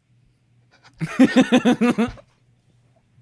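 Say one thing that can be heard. A young man laughs heartily over an online call.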